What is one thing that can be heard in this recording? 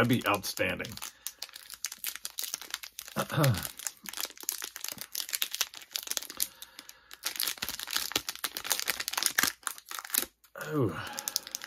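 A foil card pack crinkles and tears open in hands.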